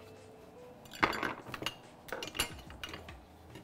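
Dishes clatter and knock on a counter.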